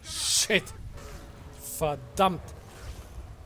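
A man exclaims loudly into a nearby microphone.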